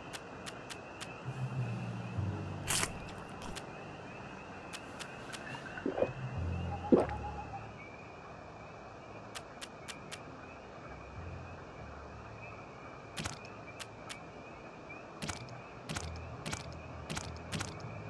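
Soft menu clicks tick now and then as items are selected.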